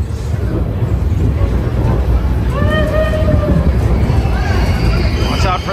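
A ride car rumbles steadily along its track.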